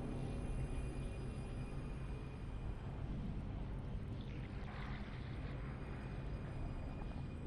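A low, throbbing electric hum drones steadily.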